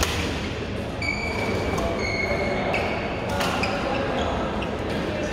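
Shoes squeak on a hard court floor in an echoing hall.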